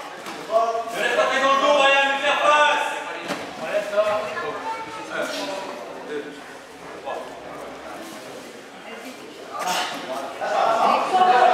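Bodies shuffle and thump on a padded mat.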